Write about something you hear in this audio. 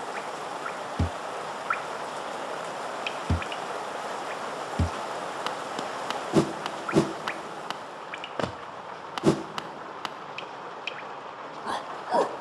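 A small character's footsteps tap on a hard floor.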